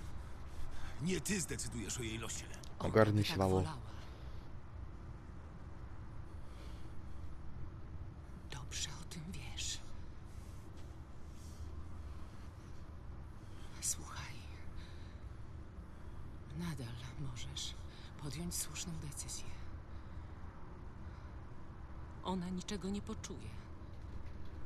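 A woman speaks tensely and firmly, close by.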